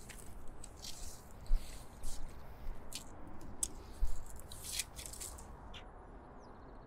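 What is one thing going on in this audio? Footsteps crunch on a gritty rooftop.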